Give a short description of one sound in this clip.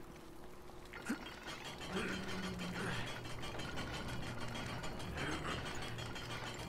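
A heavy iron gate grinds and rattles as it rises.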